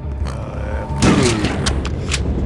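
A shotgun fires with a loud, echoing blast.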